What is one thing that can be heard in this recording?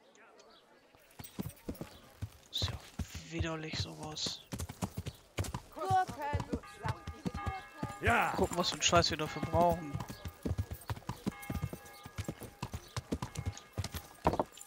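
A horse's hooves clop steadily on a dirt road.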